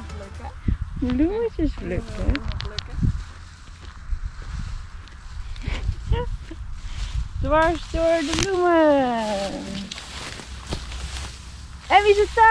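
A young woman speaks close by in a lively, sing-song voice.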